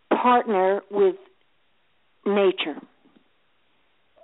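A woman speaks clearly into a microphone in short phrases.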